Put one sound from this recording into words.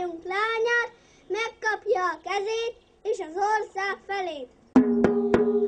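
A young boy sings loudly into a microphone.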